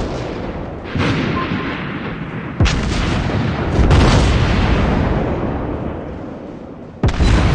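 Shells explode with rumbling blasts.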